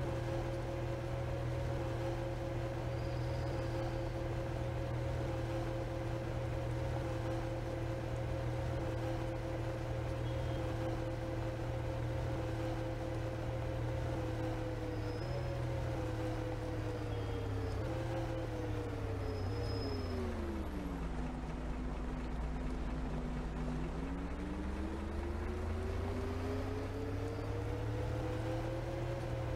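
A bus engine hums steadily, drops in pitch as the bus slows, then rises again as it speeds up.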